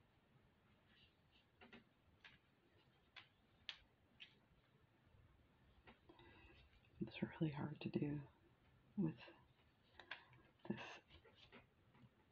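Glass beads click softly against each other and against metal pliers.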